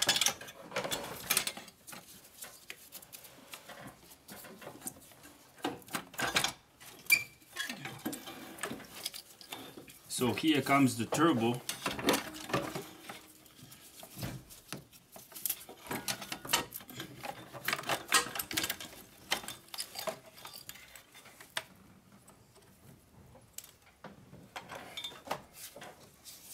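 Metal parts clink and knock.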